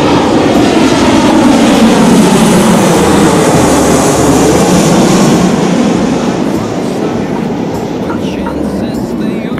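A jet airliner roars loudly overhead and fades into the distance.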